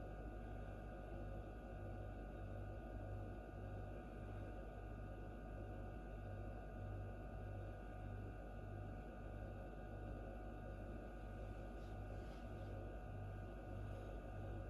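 An incubator fan hums steadily close by.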